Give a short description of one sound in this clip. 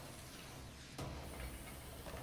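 A heavy metal box crashes into a wall.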